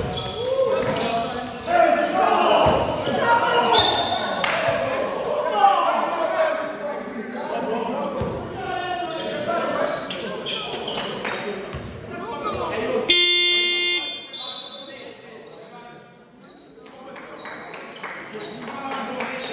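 Basketball shoes squeak on the court.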